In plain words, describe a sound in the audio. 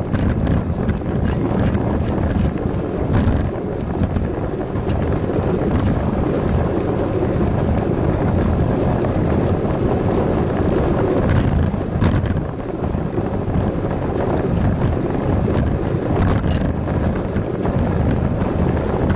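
Bicycle tyres roll on a paved path.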